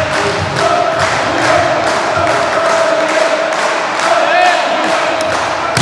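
A volleyball bounces repeatedly on a hard floor.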